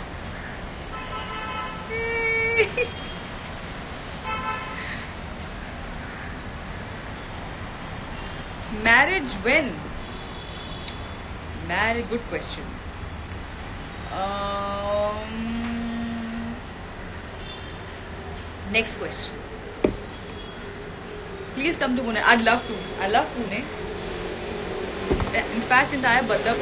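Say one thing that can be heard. A young woman speaks close by with animation, laughing at times.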